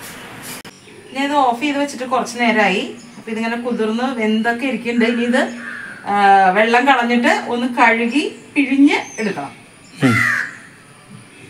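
A middle-aged woman talks with animation, close by.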